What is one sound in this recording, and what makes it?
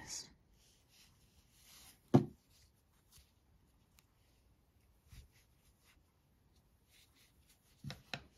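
A crochet hook works softly through yarn.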